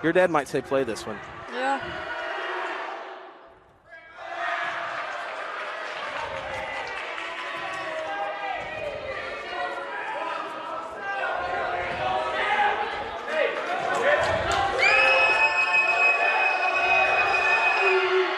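A basketball bounces on a wooden floor.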